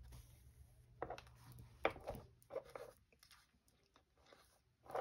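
Fabric rustles softly as it is handled and folded.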